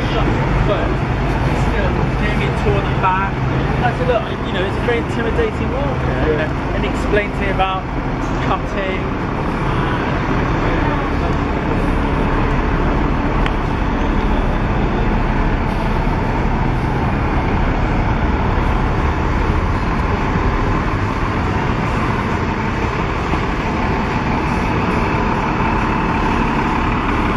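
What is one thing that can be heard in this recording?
Busy city traffic rumbles steadily nearby.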